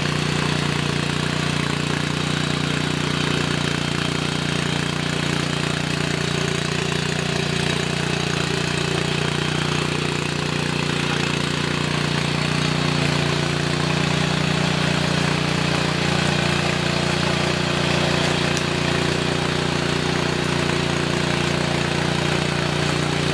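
Tiller tines churn through dry soil and leaves.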